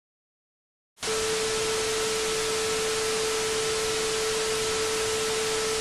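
Loud television static hisses steadily.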